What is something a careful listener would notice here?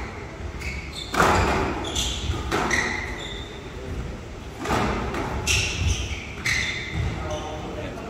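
A squash ball smacks sharply against the walls and racquets in a quick rally.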